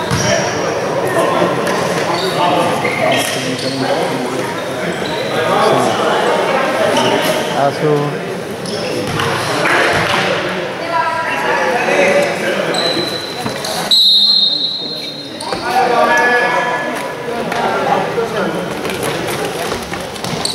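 Players and spectators shout and call out in a large echoing hall.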